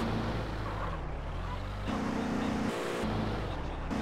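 Tyres screech on a smooth floor.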